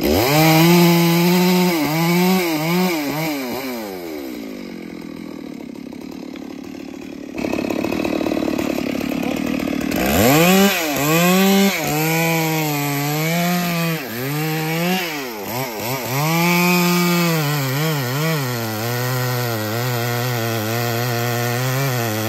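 A chainsaw cuts through a tree trunk.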